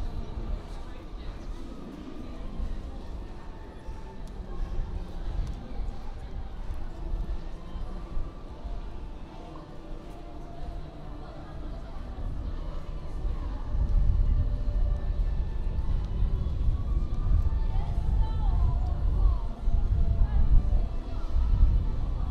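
People chatter quietly in the background.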